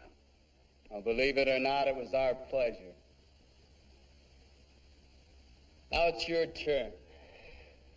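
A young man speaks urgently.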